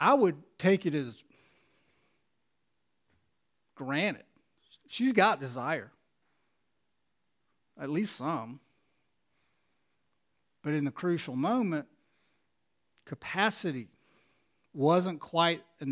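A middle-aged man speaks calmly into a headset microphone in short phrases with pauses.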